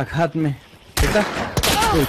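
A rifle fires a single shot.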